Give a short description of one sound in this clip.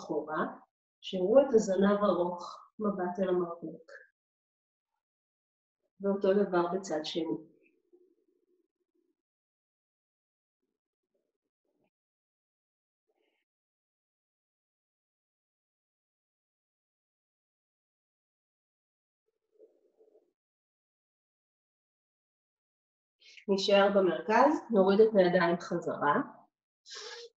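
A woman speaks calmly and clearly into a close microphone, pausing now and then.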